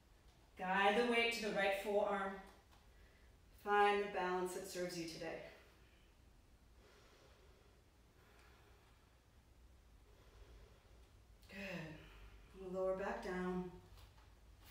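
A young woman speaks calmly and clearly, close to a microphone, pausing between phrases.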